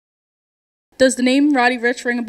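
A young woman speaks clearly into a handheld microphone.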